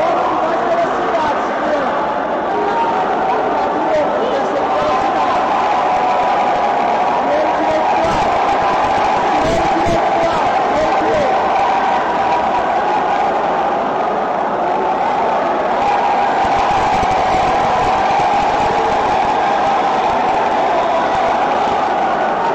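A large crowd in an echoing arena chatters and cheers steadily.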